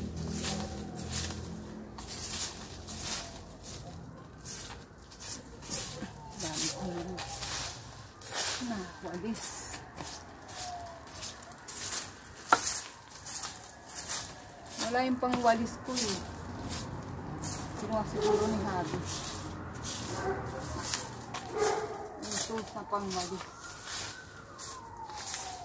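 A broom sweeps the ground outdoors in short, scratchy strokes.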